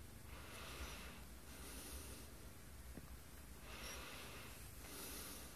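A hand rubs softly against a cat's fur in repeated strokes.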